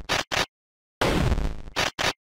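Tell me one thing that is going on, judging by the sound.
A shotgun fires with a loud boom.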